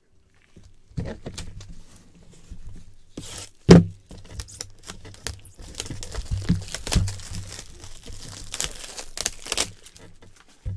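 Plastic wrap crinkles and tears as a box is unwrapped.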